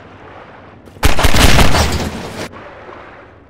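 A pistol fires several shots in quick succession.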